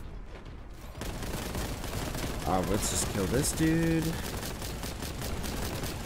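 A shotgun fires loud booming blasts.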